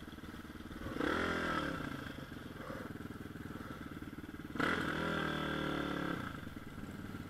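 A motorcycle engine revs up sharply twice and drops back.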